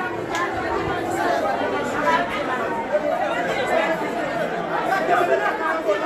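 Several men talk at once close by in an echoing room.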